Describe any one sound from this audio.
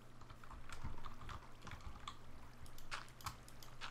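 Dirt crunches in short bursts as blocks are dug out.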